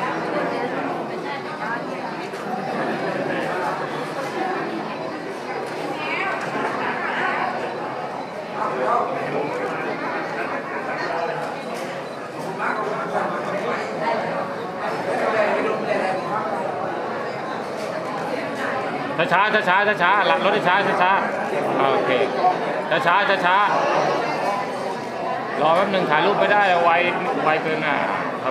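A crowd of men and women chat nearby.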